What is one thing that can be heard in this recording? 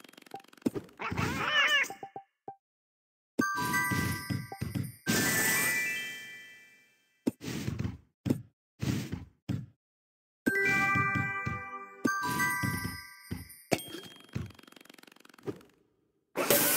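Game blocks pop and clear with bright chiming effects.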